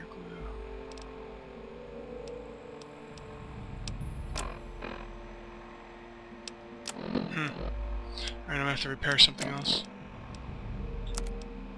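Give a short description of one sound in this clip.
Soft electronic clicks tick as a menu is scrolled.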